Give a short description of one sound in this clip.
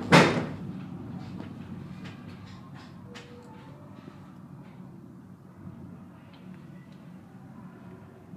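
A funicular car rolls along its rails with a soft rumble.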